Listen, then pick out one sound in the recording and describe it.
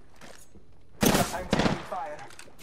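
Gunshots ring out sharply at close range.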